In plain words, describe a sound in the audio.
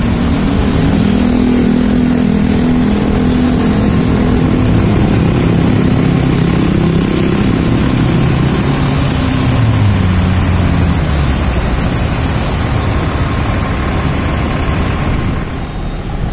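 A bus engine idles loudly close by, its rumble rising and falling.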